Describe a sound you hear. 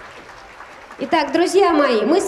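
A woman speaks loudly close by.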